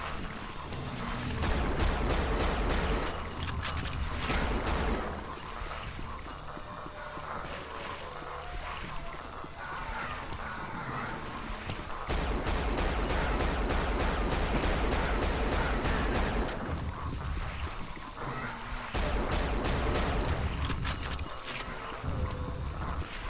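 A gun fires rapid bursts of shots that echo off hard walls.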